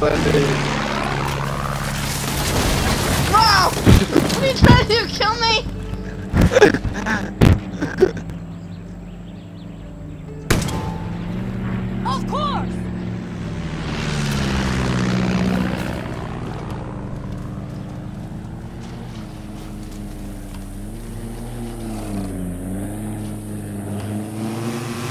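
A propeller plane engine drones overhead, rising and falling in pitch.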